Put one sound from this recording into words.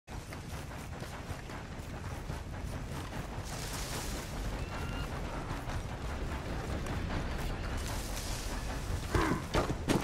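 Footsteps run quickly over dirt.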